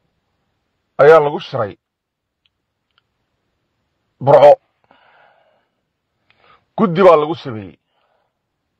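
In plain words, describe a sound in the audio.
An older man speaks into microphones in short, measured bursts with pauses.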